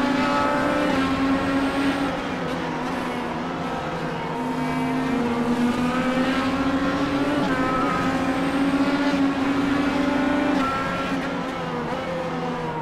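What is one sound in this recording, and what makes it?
Racing car engines roar at high revs, their pitch shifting through the gears.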